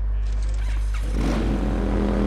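A motorcycle engine roars and revs up.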